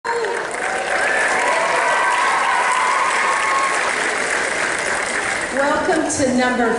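A young woman sings into a microphone in a large echoing hall.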